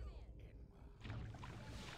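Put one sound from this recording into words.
Torch flames crackle softly.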